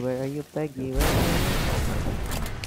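A car explodes with a loud boom.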